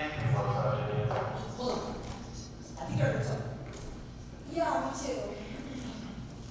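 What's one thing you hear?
A teenage boy speaks loudly and with animation in a large echoing hall.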